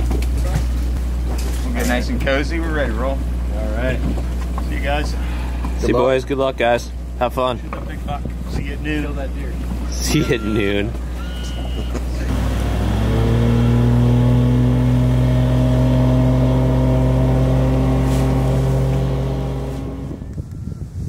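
A boat motor hums steadily, then rises in pitch and drones on.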